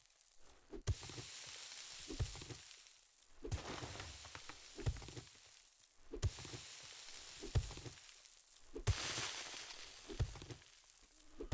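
A shovel thuds repeatedly into dirt and grass.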